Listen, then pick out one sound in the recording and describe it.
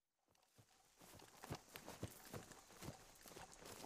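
Dry leaves crunch underfoot as someone runs outdoors.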